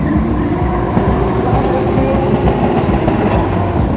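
Tyres screech on tarmac.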